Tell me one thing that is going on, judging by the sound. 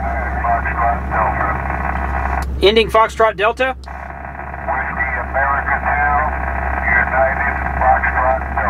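A man's voice comes over a crackly radio loudspeaker.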